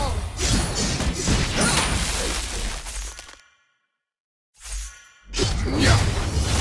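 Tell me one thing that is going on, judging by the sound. Game sound effects whoosh and clash in quick bursts.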